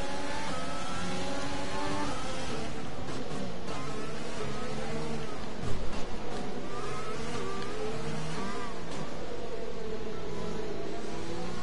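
A racing car engine whines loudly, rising and falling in pitch as the car brakes and speeds up.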